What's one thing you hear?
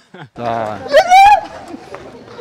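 A young woman screams loudly in fright.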